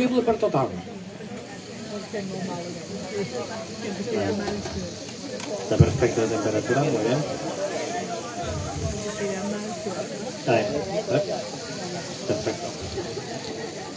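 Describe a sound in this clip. A metal spoon clinks against a cooking pot.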